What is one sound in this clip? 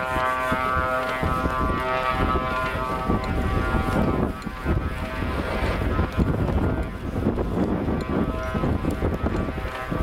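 A large jet airliner roars loudly overhead with a whining engine hum.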